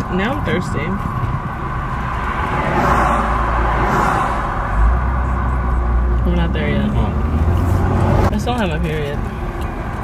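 A young man talks animatedly close by.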